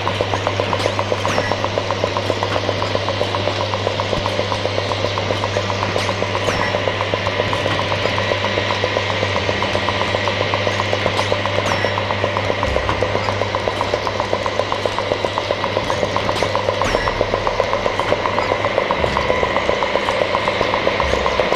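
Electronic music plays through loudspeakers with a steady low drone and a fast pulsing rhythm.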